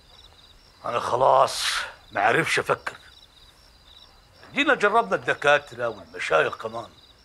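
An older man speaks with animation.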